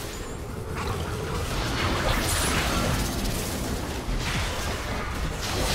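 Spell effects crackle and burst in a video game battle.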